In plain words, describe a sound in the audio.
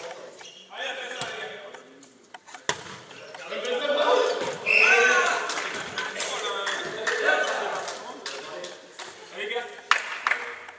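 Young men shout and call out to each other across an echoing hall.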